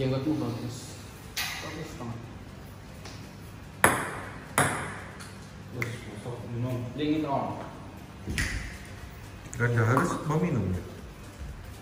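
Men talk and laugh casually nearby.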